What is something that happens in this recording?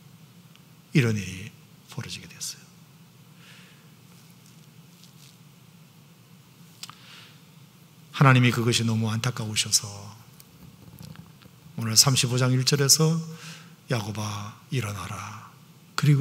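An older man speaks slowly and earnestly into a microphone, with long pauses, in a room that echoes a little.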